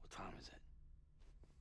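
A younger man asks questions in a low, rough voice.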